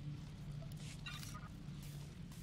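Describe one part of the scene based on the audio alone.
A soft game chime rings out.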